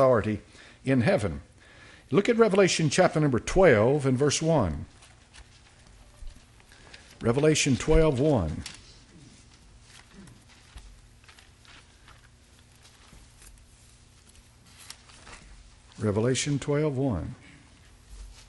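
An elderly man reads aloud slowly into a microphone, in bursts with long pauses.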